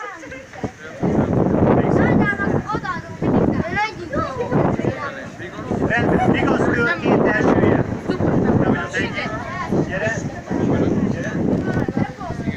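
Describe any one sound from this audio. Several children and men talk over one another close by.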